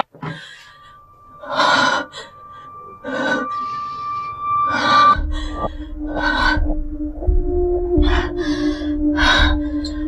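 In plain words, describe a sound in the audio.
A young woman breathes heavily and gasps in fear.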